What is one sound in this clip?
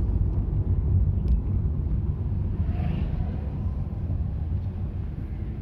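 Tyres rumble over a concrete road.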